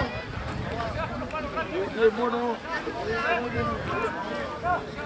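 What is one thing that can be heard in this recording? Adult spectators close by talk and call out with animation.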